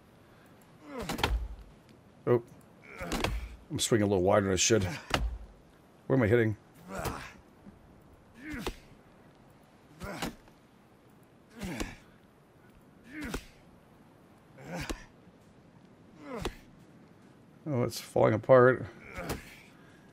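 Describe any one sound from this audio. Heavy logs thud into place, again and again.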